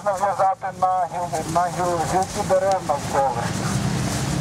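A man shouts through a megaphone close by, with a harsh, tinny sound.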